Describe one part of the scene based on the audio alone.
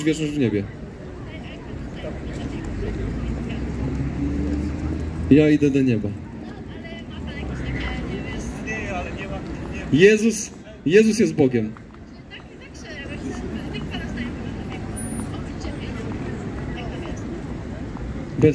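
A crowd of pedestrians murmurs and footsteps shuffle outdoors.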